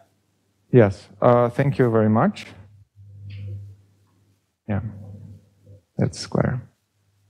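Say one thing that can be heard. A man lectures calmly, heard close by.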